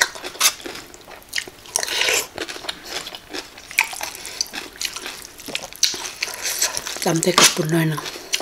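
A spoon scrapes and clinks in a bowl of broth.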